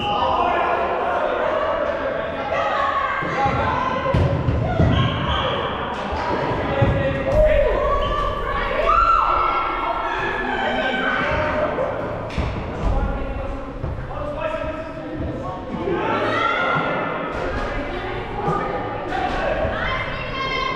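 Young women call out and shout to each other in a large echoing hall.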